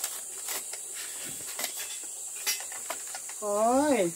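Bamboo strips clatter and knock against each other as they are laid down.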